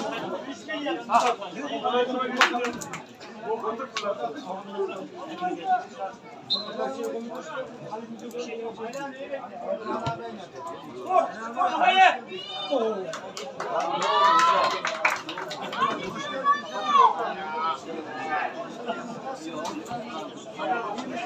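Football players shout and call to each other across an open pitch outdoors.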